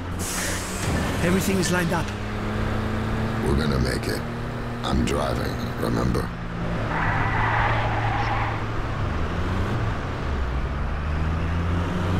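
A heavy truck engine drones as the truck drives at speed.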